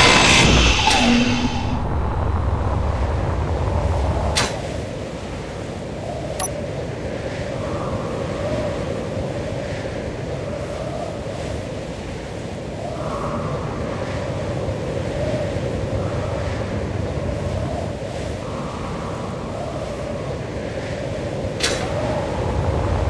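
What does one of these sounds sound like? A jetpack hums steadily in flight.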